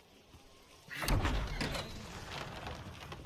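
Heavy wooden double gates creak as they are pushed open.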